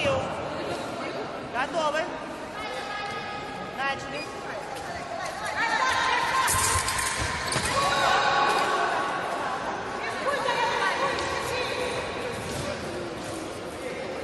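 Fencers' shoes squeak and thud on the floor.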